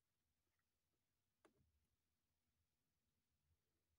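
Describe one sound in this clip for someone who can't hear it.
A fingertip taps a touchscreen once.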